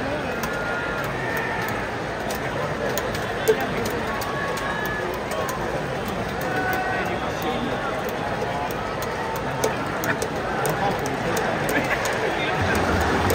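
A large stadium crowd cheers and chants steadily outdoors.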